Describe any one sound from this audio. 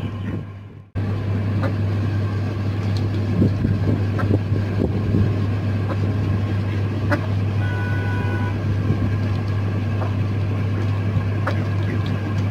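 Ducks and hens peck food from metal bowls with light clicks.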